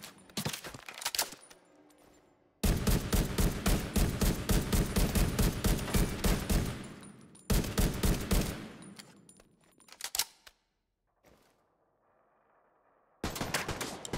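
Enemy gunfire rattles from across the hall.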